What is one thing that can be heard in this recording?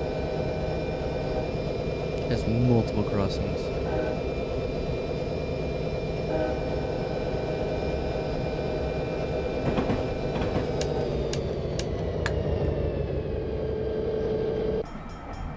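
A diesel locomotive engine rumbles and drones steadily.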